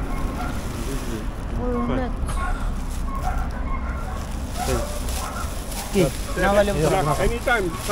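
A plastic bag rustles as bottles are pushed into it.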